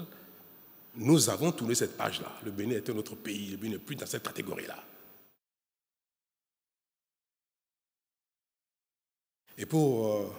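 A middle-aged man speaks with animation into a microphone.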